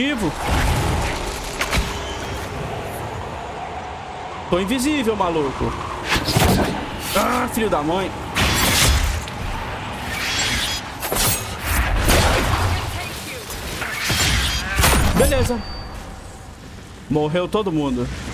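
Blades clash and strike repeatedly.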